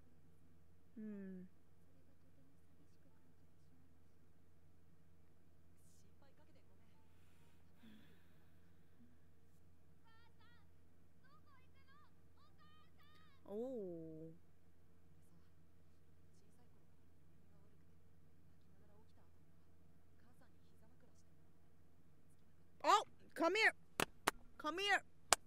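A young woman speaks briefly and loudly into a close microphone, in short bursts with long pauses.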